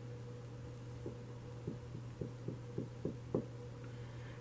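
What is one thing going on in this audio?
Cards tap softly against a table.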